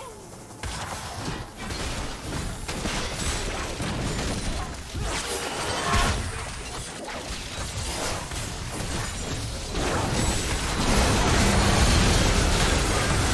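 Spell effects whoosh and crackle as game characters fight.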